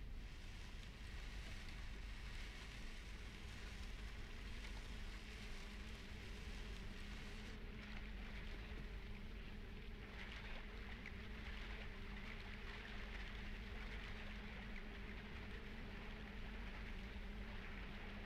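A wooden crate scrapes as it is dragged across the ground.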